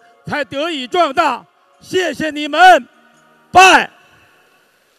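A woman speaks loudly and with feeling through a microphone.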